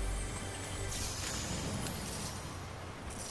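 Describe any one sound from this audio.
A treasure chest in a video game opens with a bright chime.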